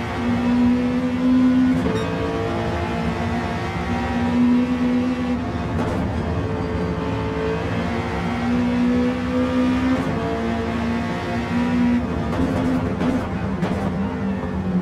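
A racing car engine roars steadily, its pitch rising and falling as it shifts gears.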